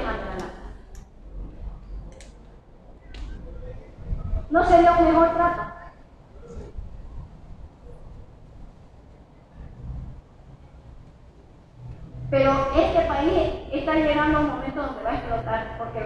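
A woman speaks with animation through a microphone and loudspeaker, in bursts with pauses.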